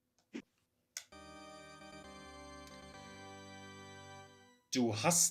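A bright electronic jingle chimes steadily.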